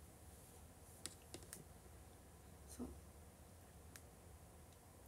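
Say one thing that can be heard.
Soft cloth rustles and taps close by as it is handled.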